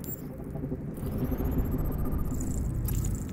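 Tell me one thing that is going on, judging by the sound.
Soft electronic beeps chime as a scan finishes.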